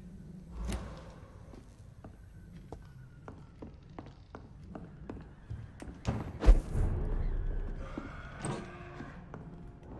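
Footsteps thud slowly on wooden floorboards.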